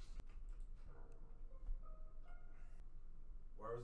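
A game alert sounds in short rising notes.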